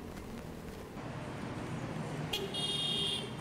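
A car drives past on a street.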